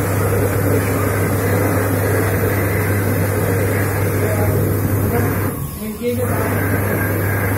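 A hand dryer blows air with a loud, steady roar.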